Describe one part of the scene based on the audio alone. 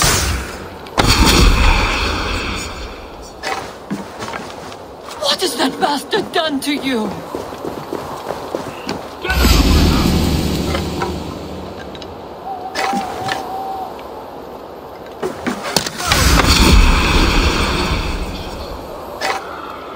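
A smoke bomb bursts with a loud hiss.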